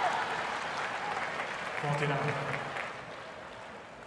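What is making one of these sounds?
A crowd applauds, then fades away.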